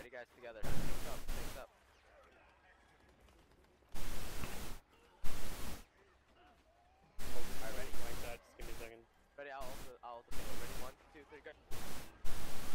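Gunfire rattles in short, rapid bursts.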